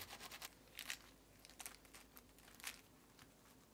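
A crisp croissant crackles as hands press it.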